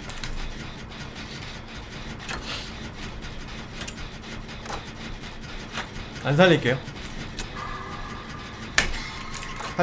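A machine rattles and clanks as it is worked on.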